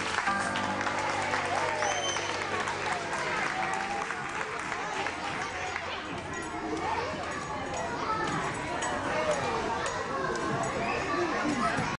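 A crowd of adults and children chatter in a large echoing hall.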